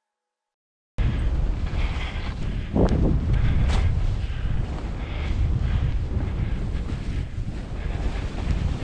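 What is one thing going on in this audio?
Skis hiss and scrape over snow at speed.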